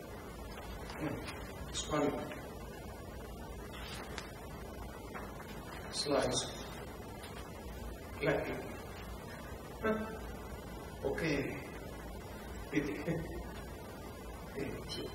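An elderly man speaks calmly through a microphone in a large echoing hall, in short bursts with long pauses.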